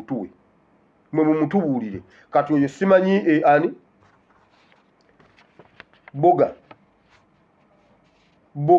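A man speaks close to the microphone with animation, in short bursts.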